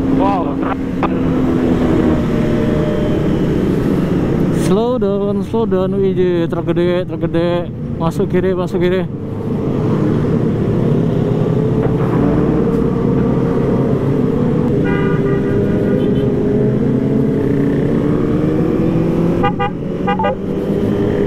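A motorcycle engine hums up close, rising and falling in pitch as it speeds up and slows down.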